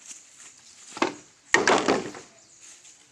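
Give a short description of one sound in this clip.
A bamboo pole thuds onto the ground.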